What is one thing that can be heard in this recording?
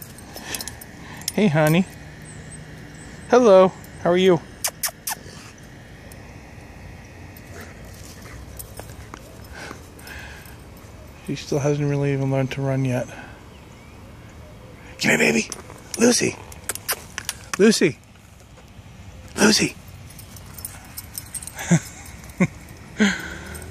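A dog barks outdoors.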